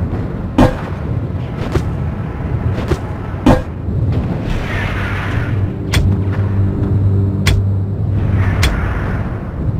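Guns fire in short, sharp bursts.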